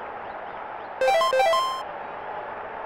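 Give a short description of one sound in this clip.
Short electronic beeps play a quick rising tune.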